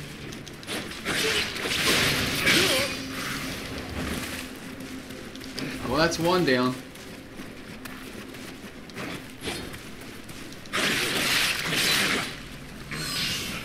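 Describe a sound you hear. Swords clash and slash in a video game fight.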